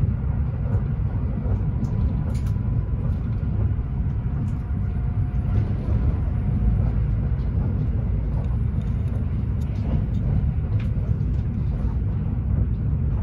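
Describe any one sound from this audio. Train wheels click and rattle over rail joints.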